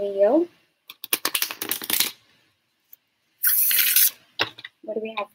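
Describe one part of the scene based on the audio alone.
Cards shuffle and riffle in a young woman's hands.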